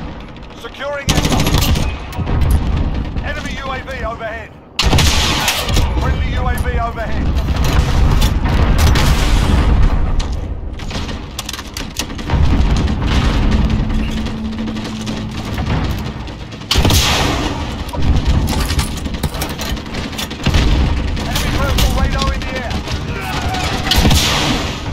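Gunshots crack loudly in bursts.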